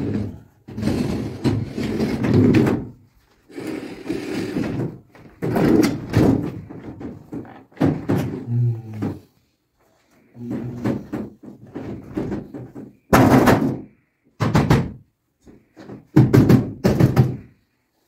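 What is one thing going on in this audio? A metal appliance knocks and scrapes as it is moved.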